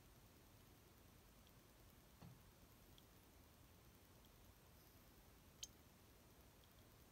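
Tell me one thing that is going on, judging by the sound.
Liquid drips softly from a dropper into a glass beaker.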